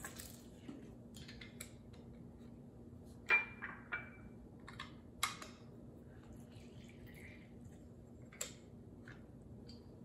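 A lemon squeezer clicks and clacks as it is opened and pressed.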